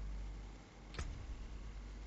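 A short click sounds.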